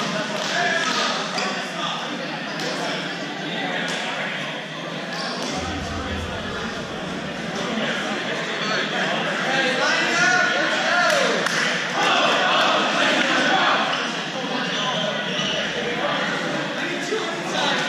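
A crowd of people chatter and call out, echoing in a large hall.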